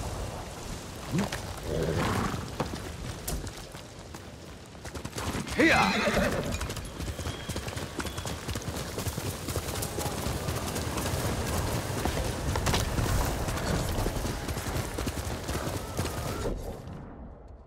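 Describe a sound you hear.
Horse hooves thud on soft ground at a gallop.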